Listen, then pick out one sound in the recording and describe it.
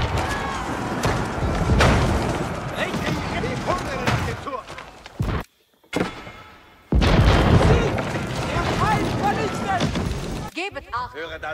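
Weapons clash and bang in a noisy battle.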